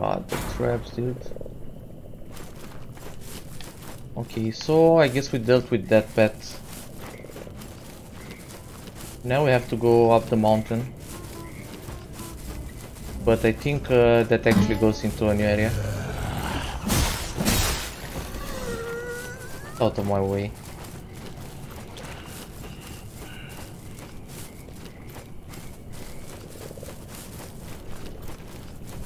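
Footsteps tread over soft, wet ground.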